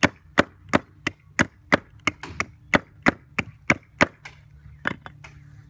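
A hatchet chops into wood with quick, steady blows.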